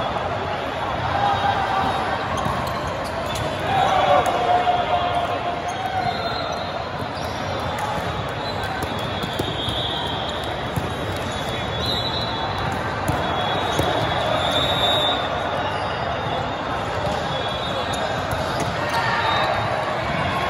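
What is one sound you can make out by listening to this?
A large echoing hall fills with the murmur of a crowd.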